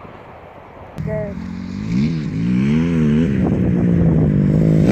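A dirt bike engine revs up and down nearby.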